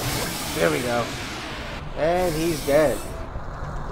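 A monster lets out shrill, wavering screeches.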